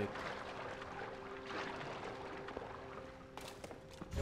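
Water splashes softly as someone swims.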